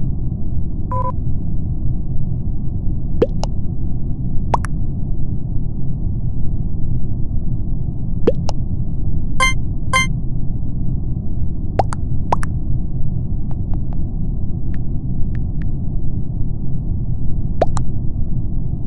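Short electronic clicks and blips sound now and then.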